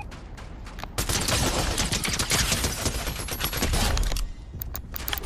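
Rapid gunfire rattles in a game.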